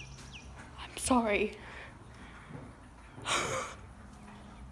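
A young woman exclaims loudly close by.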